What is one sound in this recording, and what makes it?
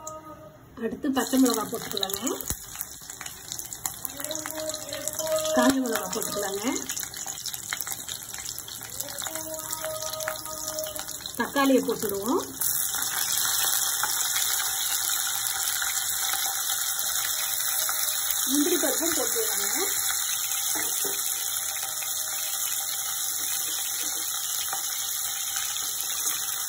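Hot oil sizzles in a pan.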